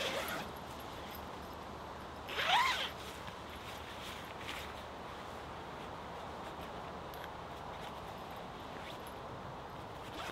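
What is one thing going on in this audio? The canvas of a tent rustles as it is handled.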